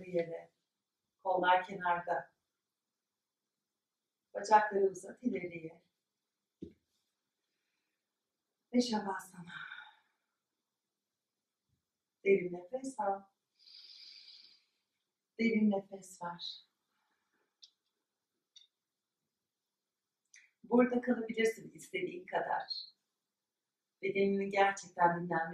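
A young woman speaks calmly in short phrases with long pauses.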